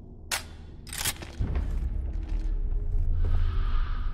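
A gun is reloaded with sharp metallic clicks.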